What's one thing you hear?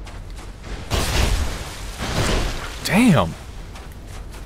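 A heavy blade swooshes and clangs in a sudden burst.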